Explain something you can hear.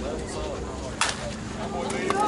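A bat strikes a softball with a sharp crack.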